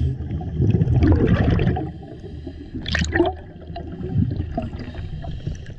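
Air bubbles gurgle and burble underwater.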